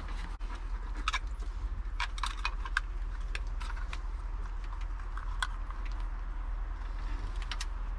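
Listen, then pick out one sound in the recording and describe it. A small folding tool clicks open and shut.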